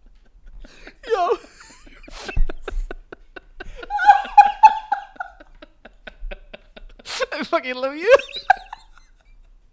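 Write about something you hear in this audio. A young man laughs heartily close to a microphone.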